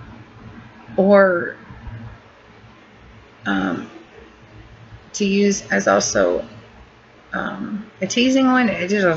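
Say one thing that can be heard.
A middle-aged woman speaks close to the microphone with pauses.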